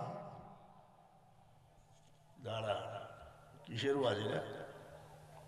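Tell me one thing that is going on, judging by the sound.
An elderly man preaches with animation into a microphone, heard over a loudspeaker with echo.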